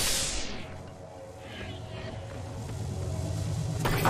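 A metal door slides open.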